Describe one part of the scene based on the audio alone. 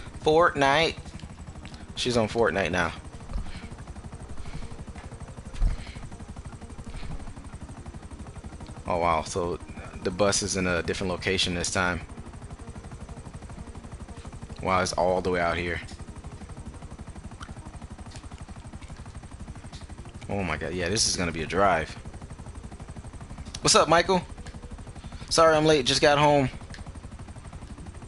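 A helicopter's rotor thumps steadily.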